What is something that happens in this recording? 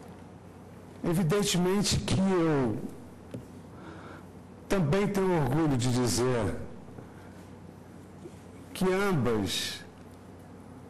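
A middle-aged man speaks with emphasis into a microphone, in pauses.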